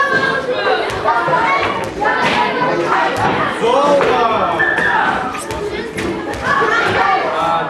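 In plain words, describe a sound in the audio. A crowd of boys shouts and cheers excitedly nearby.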